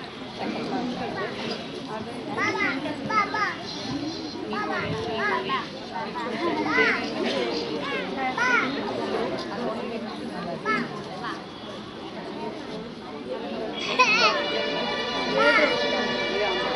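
A woman talks to children, giving directions.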